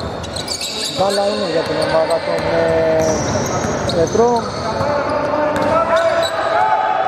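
Men shout to each other across an echoing hall.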